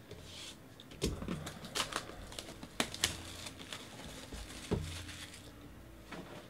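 A plastic wrapper crinkles and rustles as it is torn off a box.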